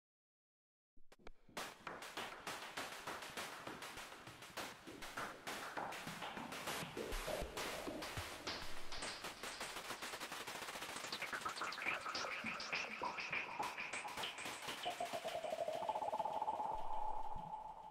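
A synthesizer plays a gritty, pulsing electronic sound with rising and falling tones.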